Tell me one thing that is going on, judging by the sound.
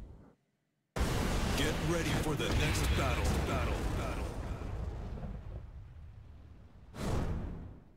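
Flames roar and whoosh loudly.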